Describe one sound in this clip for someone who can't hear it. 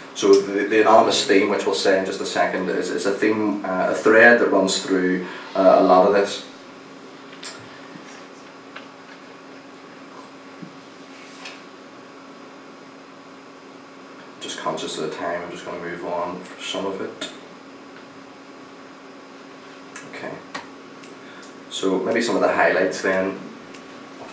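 A young man speaks calmly into a microphone, with long pauses between phrases.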